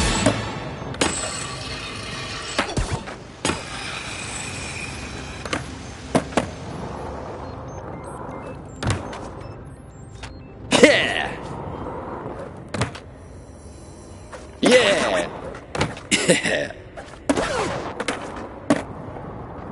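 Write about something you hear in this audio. A skateboard clacks sharply on landing.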